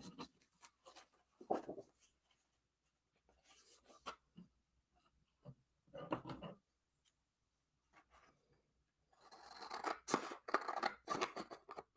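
Card stock rustles and flaps as it is handled.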